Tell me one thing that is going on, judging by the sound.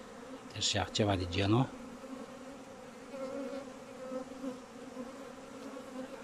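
Many honeybees buzz as they fly around their hives.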